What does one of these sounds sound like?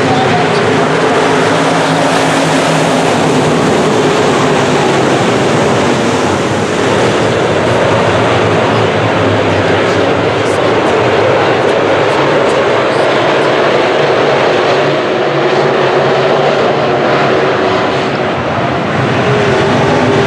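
Race car engines roar loudly as cars speed around a dirt track.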